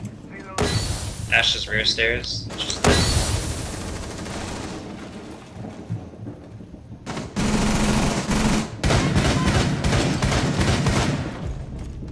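A rifle magazine is changed with clunks and clicks.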